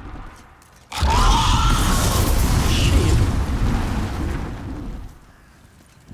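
A fire roars and crackles loudly.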